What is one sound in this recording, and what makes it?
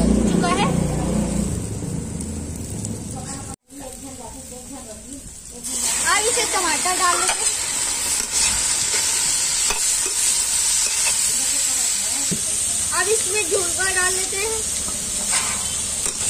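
Vegetables sizzle and crackle in hot oil.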